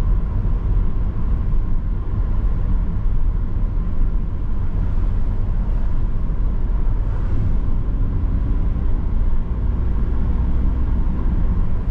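A car engine hums steadily with road rumble from inside the car.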